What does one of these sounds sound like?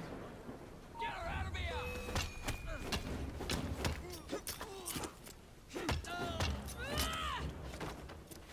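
Fists land heavy punches in a scuffle.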